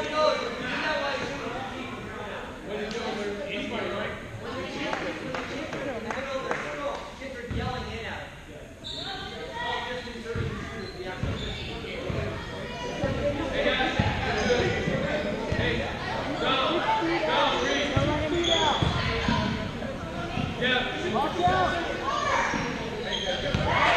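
Spectators chatter nearby in a large echoing gym.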